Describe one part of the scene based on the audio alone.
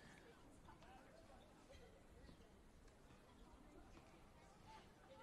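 Spectators murmur and chat quietly nearby.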